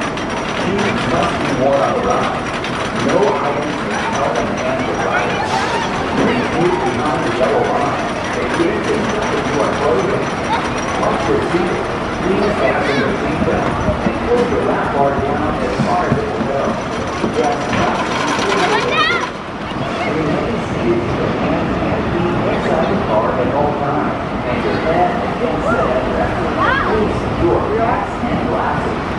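A roller coaster train rumbles and clatters along a wooden track.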